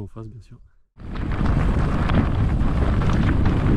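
Bicycle tyres roll over gravel.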